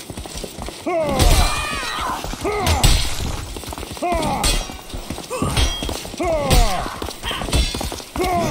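Heavy weapons strike and thud in a fight.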